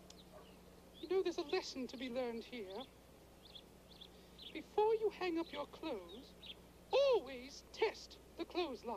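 A woman speaks in a high, theatrical puppet voice with animation.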